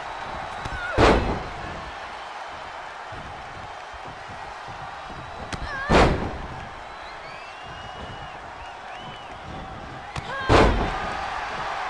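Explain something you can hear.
Heavy bodies slam onto a ring mat with loud thuds.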